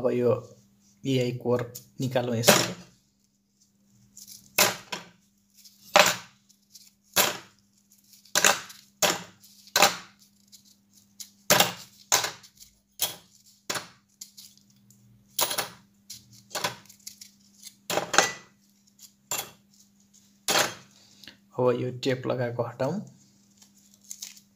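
Thin metal plates click and clink as they are handled close by.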